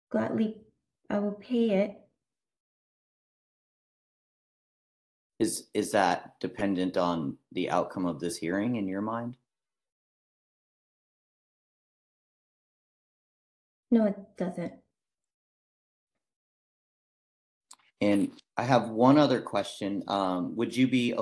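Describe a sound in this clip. A man speaks calmly over an online call, pausing between phrases.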